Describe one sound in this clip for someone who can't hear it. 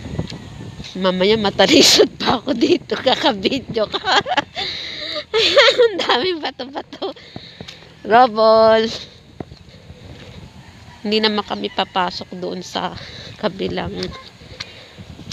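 A child talks loudly nearby, outdoors.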